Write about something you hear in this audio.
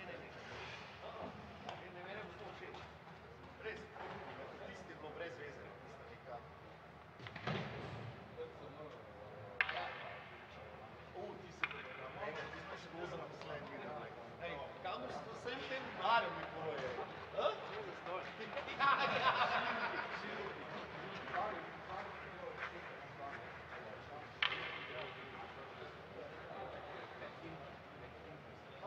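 Ice skates scrape across the ice in a large echoing arena.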